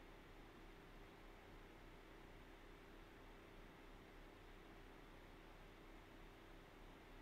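A computer fan hums steadily close by.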